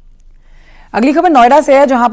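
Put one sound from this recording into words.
A young woman speaks clearly and steadily into a close microphone.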